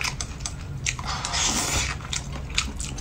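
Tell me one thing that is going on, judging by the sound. A man slurps noodles loudly, close up.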